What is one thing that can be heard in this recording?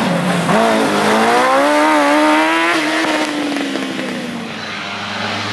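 A racing car engine revs hard and roars as the car speeds past.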